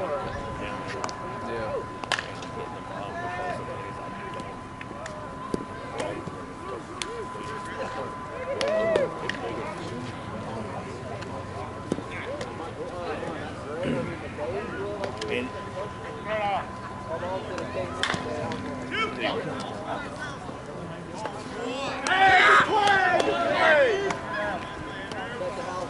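Men call out and chat across an open field outdoors.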